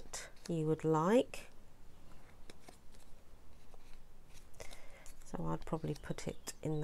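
Paper rustles softly as it is pressed and handled.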